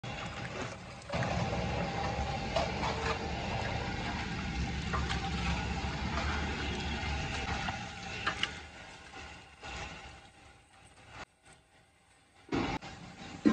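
Hands squelch and slap wet raw meat in a bowl.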